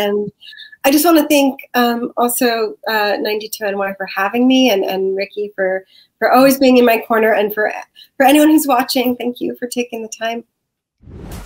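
A woman speaks warmly and with animation over an online call.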